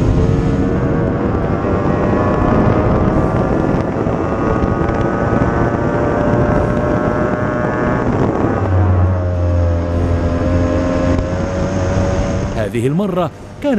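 Water spray hisses behind a speeding boat.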